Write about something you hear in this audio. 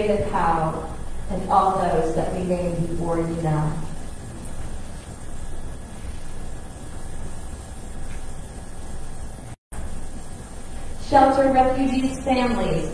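An elderly man chants slowly in an echoing hall.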